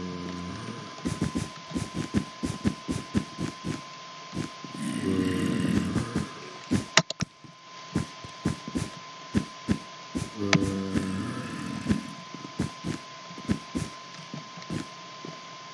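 Blocks are set down with quick soft thuds, one after another.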